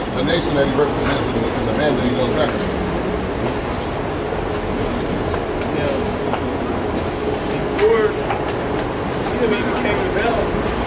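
People murmur and walk past in a busy street.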